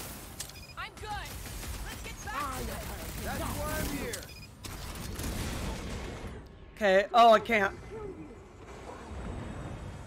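A fiery energy beam roars and crackles.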